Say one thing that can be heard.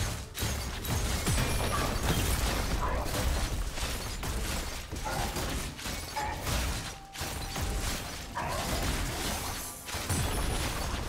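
Game spell effects crackle and boom during a fast battle.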